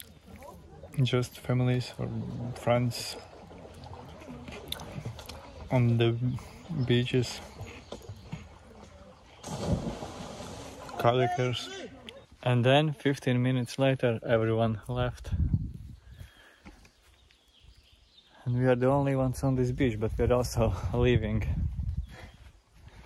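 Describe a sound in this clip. A young man speaks casually and close by.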